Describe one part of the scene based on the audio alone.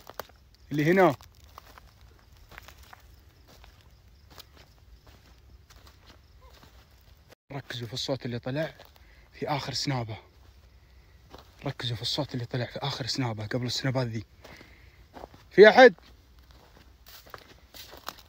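Footsteps crunch on dry ground and grass outdoors.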